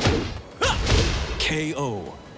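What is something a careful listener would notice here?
A heavy punch lands with a loud crashing impact.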